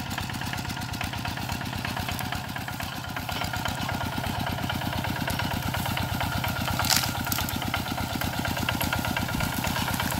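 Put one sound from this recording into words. A small diesel engine chugs steadily and loudly nearby.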